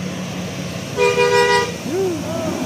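A bus horn blares a short musical tune.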